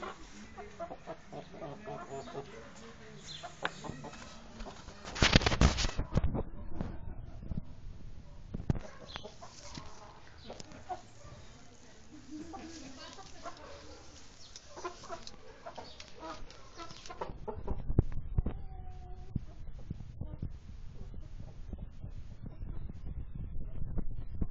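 A rooster's feet patter softly on packed dirt.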